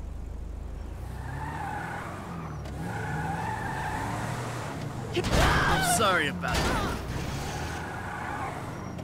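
An SUV engine hums as the car pulls away.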